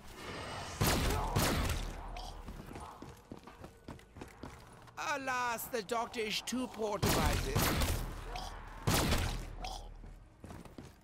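A rifle fires in loud bursts of gunshots.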